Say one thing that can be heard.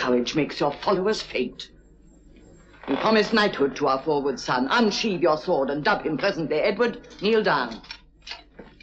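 A man speaks with emotion, close by.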